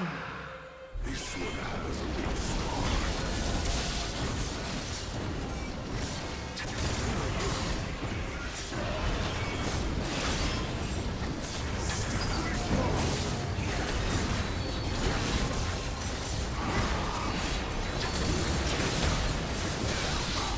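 Game explosions boom repeatedly.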